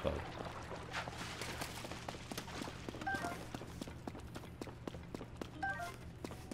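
Footsteps crunch steadily on soft ground.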